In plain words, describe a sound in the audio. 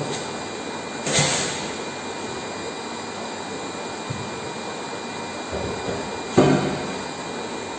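A heavy rock knocks loudly against glass.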